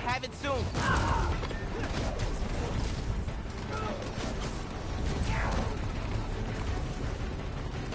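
Blows thud and crack in a brawl.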